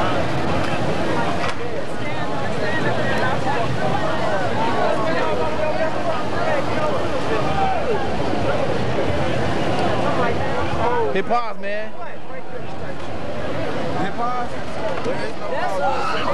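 A crowd of men and women chatter loudly close by.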